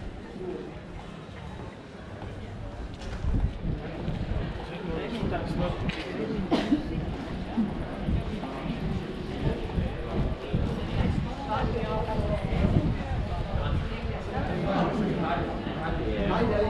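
Footsteps tap on cobblestones close by.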